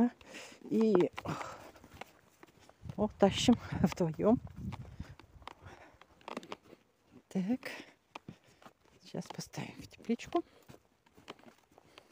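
Footsteps brush through grass.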